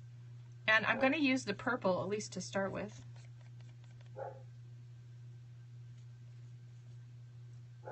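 A paintbrush brushes softly on paper.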